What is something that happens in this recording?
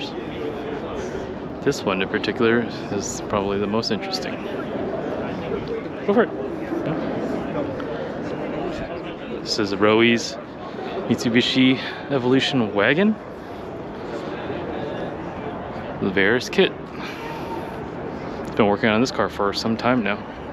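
A crowd murmurs and chatters throughout a large, echoing hall.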